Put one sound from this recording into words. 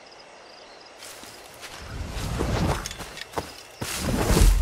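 Leafy plants rustle as someone pushes through them.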